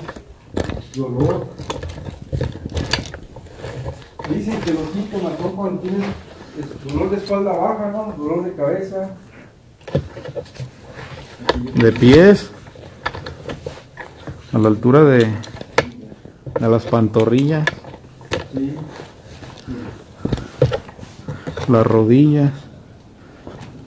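A man talks in a low voice close by, echoing in a cave.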